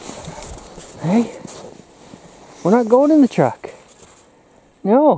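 A dog whines and yelps outdoors.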